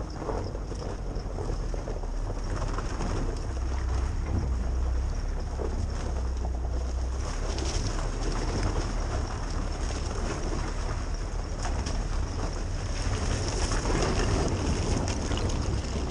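Tyres splash and squelch through mud and puddles.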